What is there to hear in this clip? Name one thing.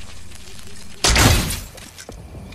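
A bow fires an arrow with a sharp whoosh.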